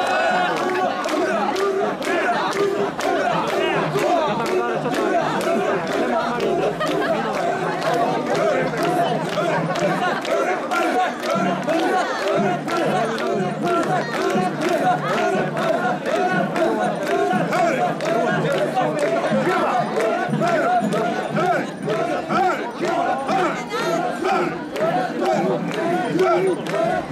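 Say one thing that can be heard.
A large crowd of men and women chants loudly and rhythmically close by.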